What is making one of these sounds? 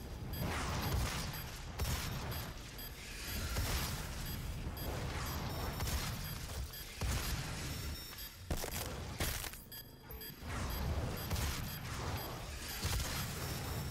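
Monsters roar and snarl.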